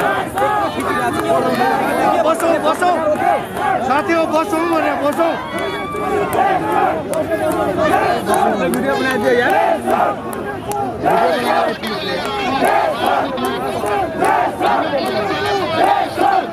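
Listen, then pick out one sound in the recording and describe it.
A large crowd of men shouts and chants loudly close by, outdoors.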